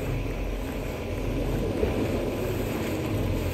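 Leafy bushes rustle as someone pushes through them.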